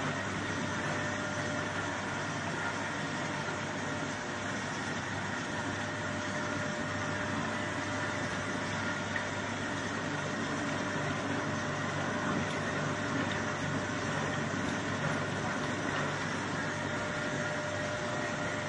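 Grains rustle and patter across a vibrating tray.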